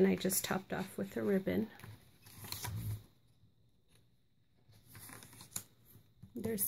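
Paper pages rustle as they are turned and folded.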